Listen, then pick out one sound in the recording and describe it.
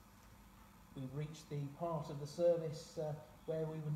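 A man reads out calmly into a microphone in an echoing hall.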